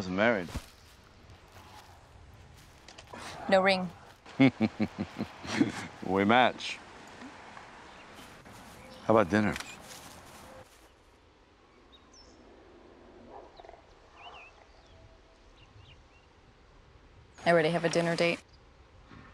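A woman speaks calmly up close.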